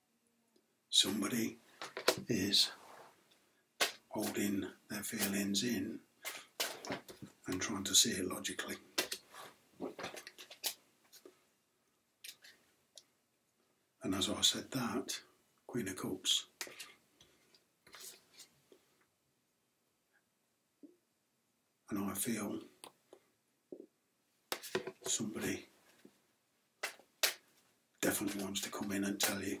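A middle-aged man talks calmly and close up, with pauses.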